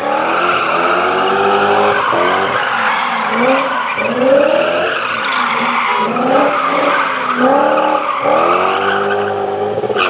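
A rally car engine revs hard, its pitch rising and falling with each gear change.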